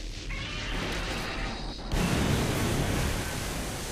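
A loud explosion bursts in a video game.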